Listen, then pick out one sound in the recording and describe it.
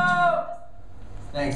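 A man sings into a microphone, heard over loudspeakers.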